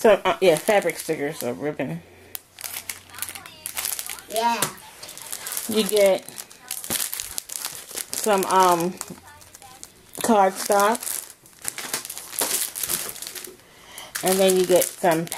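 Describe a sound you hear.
Sheets of paper rustle and flap as they are handled close by.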